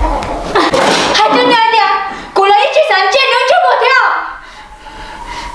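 A young woman shouts with emotion nearby.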